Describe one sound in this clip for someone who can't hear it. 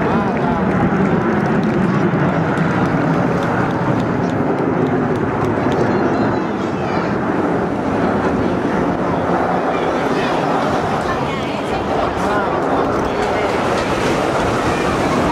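Jet engines roar steadily overhead.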